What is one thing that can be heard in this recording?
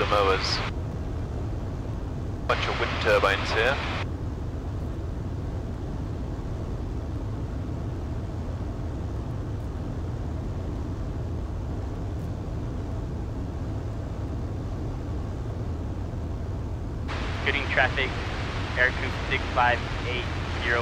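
A man speaks calmly through a headset microphone over the engine noise.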